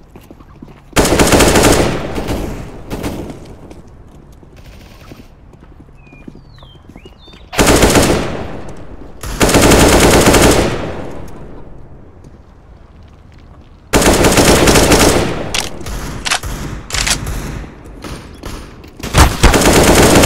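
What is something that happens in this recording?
An assault rifle fires loud bursts of shots.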